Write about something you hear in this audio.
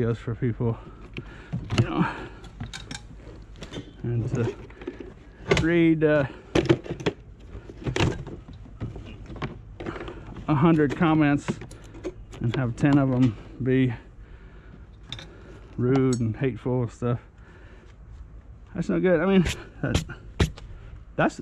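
Metal parts clank and rattle as they are handled.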